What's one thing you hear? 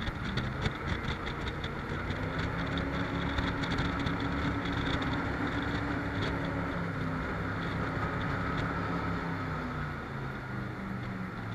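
Wind blows hard past the boat.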